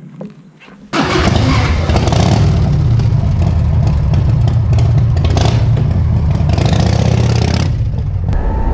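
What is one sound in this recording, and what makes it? A motorcycle engine idles with a deep, throbbing rumble.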